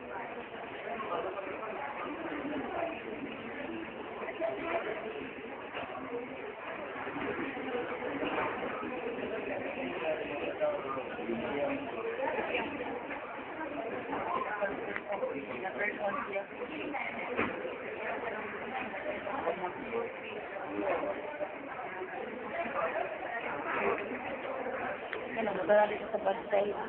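Teenage girls chatter and talk over each other close by.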